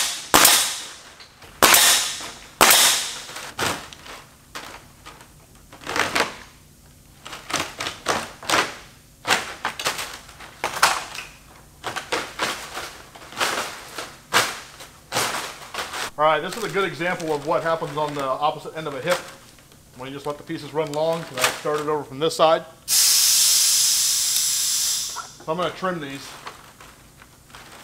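Stiff synthetic thatch rustles and rattles as it is handled.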